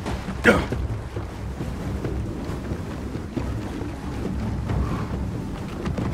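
Footsteps run over dirt, wooden boards and stone steps.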